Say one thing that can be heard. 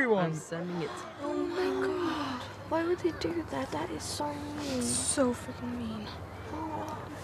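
A teenage girl speaks quietly and unhappily.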